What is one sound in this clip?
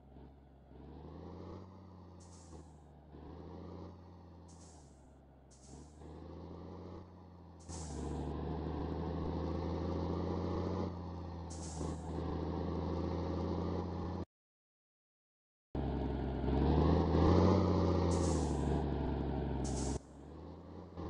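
A heavy truck engine rumbles and revs up through the gears.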